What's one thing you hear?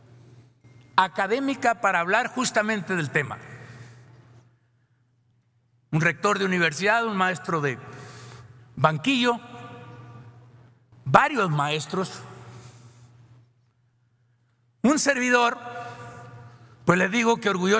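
An older man speaks firmly into a microphone in a large echoing hall, with pauses between phrases.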